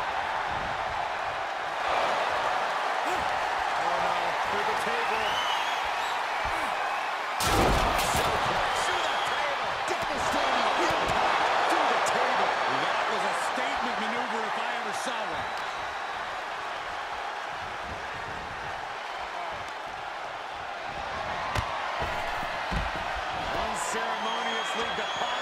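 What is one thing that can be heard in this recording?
A large arena crowd cheers and roars steadily.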